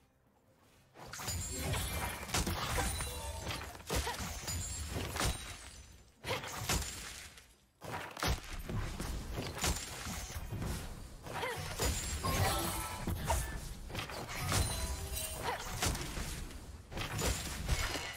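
Game characters clash with sharp hits and impacts.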